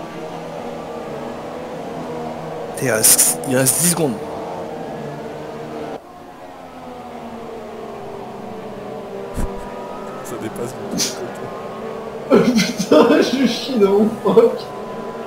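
Racing car engines whine steadily at high revs.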